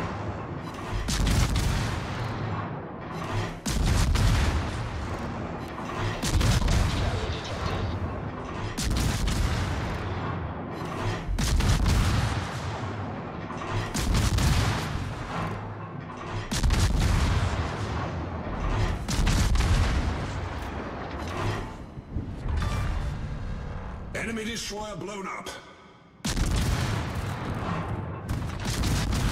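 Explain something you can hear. Heavy naval guns fire in loud, booming salvos again and again.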